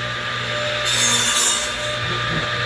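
A power saw cuts through wood.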